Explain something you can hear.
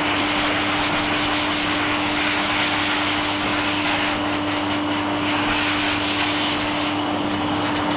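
A pet dryer blows air with a loud, steady whoosh and hum.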